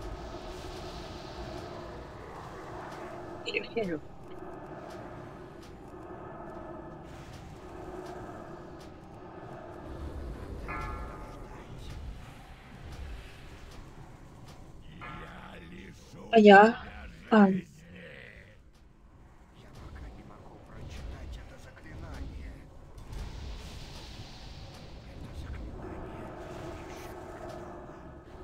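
Magic spells whoosh, crackle and burst in a fast fight.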